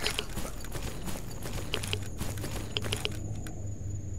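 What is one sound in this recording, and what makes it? Footsteps crunch steadily over the ground outdoors.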